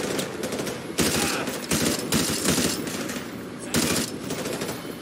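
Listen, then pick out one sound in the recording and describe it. Single gunshots crack now and then.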